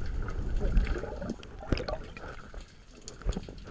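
Water splashes and sloshes close by at the surface.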